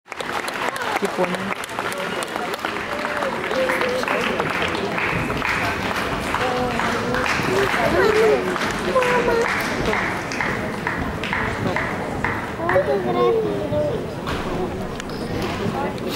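A large crowd claps along in a steady rhythm.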